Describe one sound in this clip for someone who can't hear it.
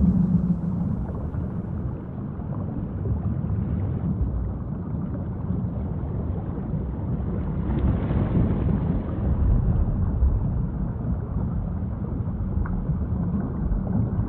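Water rumbles and swishes dully, as heard underwater.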